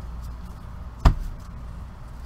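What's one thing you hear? A stack of cards thuds down on a table.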